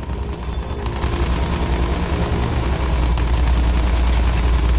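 Machine guns rattle in rapid bursts.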